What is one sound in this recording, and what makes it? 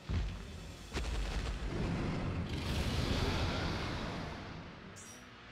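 A huge beast roars loudly.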